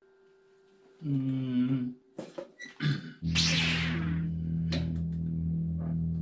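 Drums and cymbals are played hard, with a loud cymbal crash.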